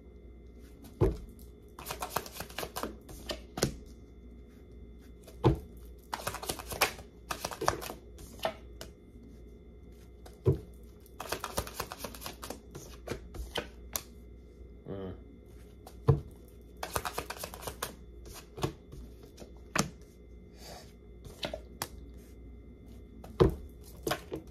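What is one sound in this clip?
Cards snap and slap sharply against each other.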